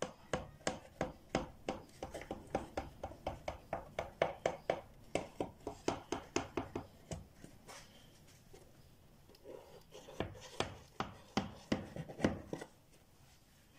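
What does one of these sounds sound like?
A knife blade taps rapidly against a hard surface.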